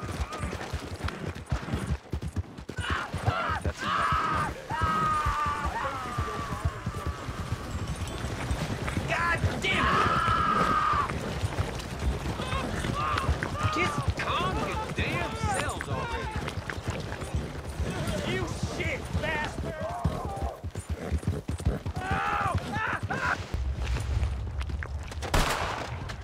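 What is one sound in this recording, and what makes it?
A horse gallops with rapid hoofbeats on a dirt track.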